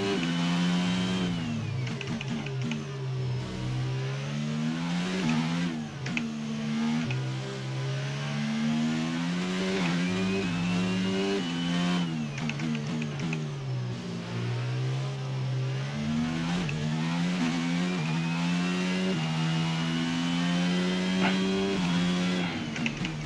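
A racing car engine roars loudly, rising in pitch and dropping sharply again and again as it shifts gears.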